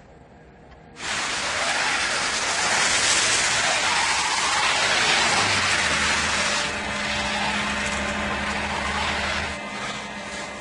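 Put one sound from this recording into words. A pickup truck's engine runs as the truck drives by.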